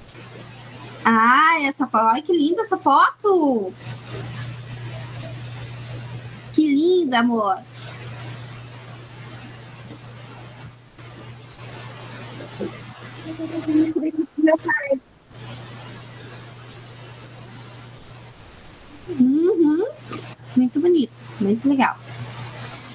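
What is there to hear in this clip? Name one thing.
An elderly woman speaks in bursts with animation through an online call.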